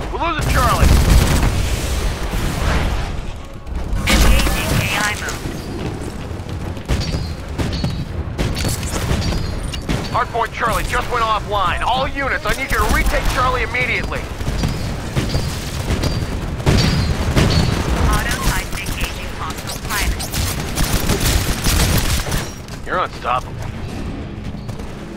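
Gunfire bursts and explosions boom in a video game.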